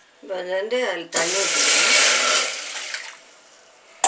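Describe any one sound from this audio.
Water pours into a metal pot with a splashing rush.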